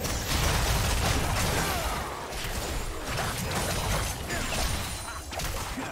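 Video game weapons clash with sharp hits.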